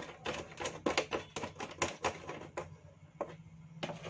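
Hands tap and press on a plastic panel.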